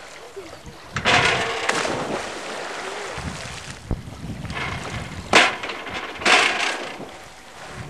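A diver splashes into water.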